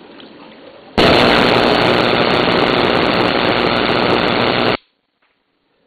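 An electric arc crackles and buzzes loudly.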